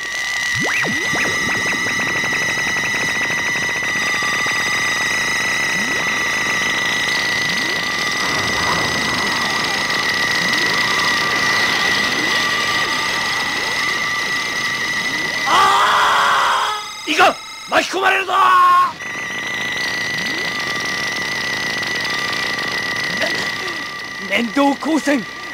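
A steady high electronic whine hums.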